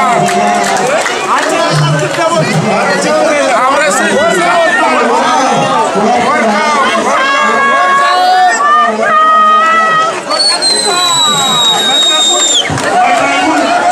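An elderly man speaks into a microphone over a loudspeaker.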